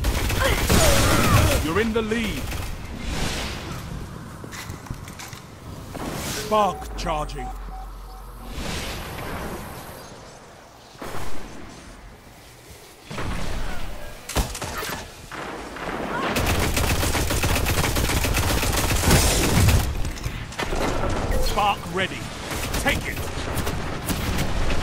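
Sniper rifle shots boom loudly, one after another.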